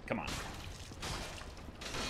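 A sword clangs against a shield.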